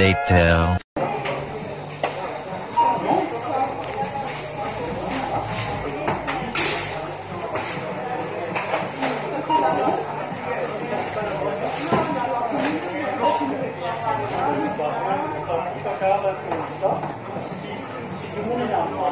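A man argues loudly with a cashier nearby.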